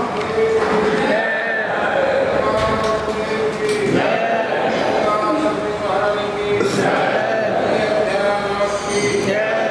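A man sings a devotional chant in a steady, ringing voice.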